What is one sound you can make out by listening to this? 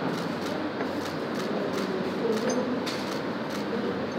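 A hacksaw rasps across metal.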